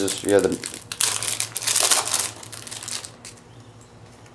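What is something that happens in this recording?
Plastic wrapping crinkles loudly as it is torn open.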